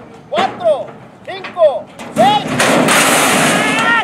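Metal starting gates bang open.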